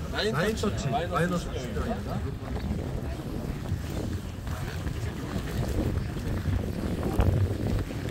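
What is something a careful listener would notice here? Footsteps shuffle through grass.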